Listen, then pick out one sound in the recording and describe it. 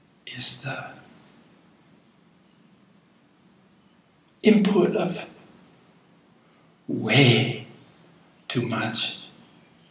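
An elderly man speaks in short bursts close to a microphone, with pauses between.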